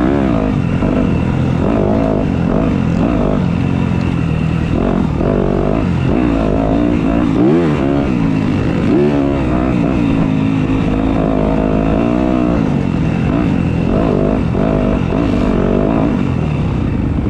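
A dirt bike engine revs loudly up close, rising and falling in pitch.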